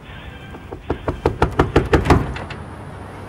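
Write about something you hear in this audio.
Metal bars rattle and clang in quick repeated blows.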